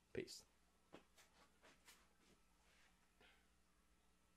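Footsteps tap on the floor, moving away.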